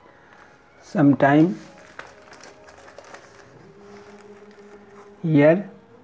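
Book pages rustle as they are turned by hand.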